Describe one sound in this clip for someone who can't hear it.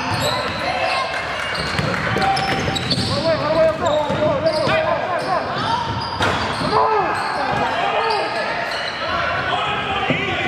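Spectators chatter and call out from the stands.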